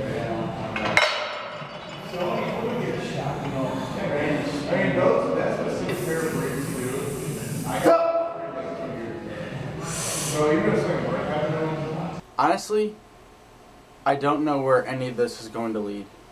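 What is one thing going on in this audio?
A man talks calmly and steadily, close to the microphone.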